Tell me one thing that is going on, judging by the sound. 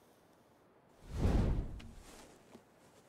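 A torch flares up and crackles with flame.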